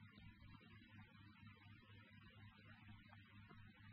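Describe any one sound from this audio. A door closes softly.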